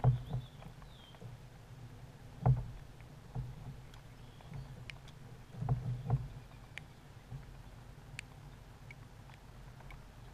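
A fishing reel clicks as a man winds in line.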